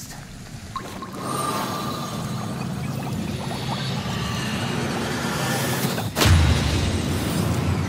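A rushing magical whoosh swells and ends with a sudden burst.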